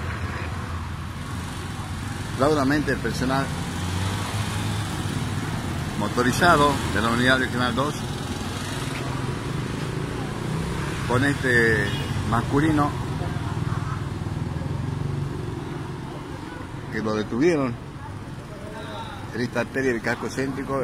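Street traffic hums steadily.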